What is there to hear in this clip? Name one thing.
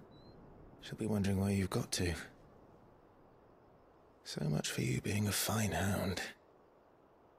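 A man speaks softly and sadly nearby.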